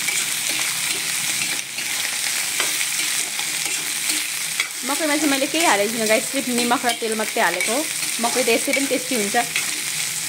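A spatula scrapes and stirs in a metal pan.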